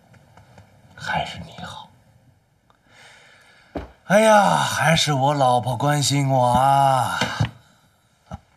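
A man speaks in a lazy, drawn-out voice, close by.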